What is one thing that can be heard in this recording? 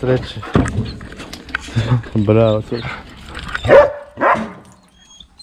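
Dogs growl and snarl as they scuffle close by.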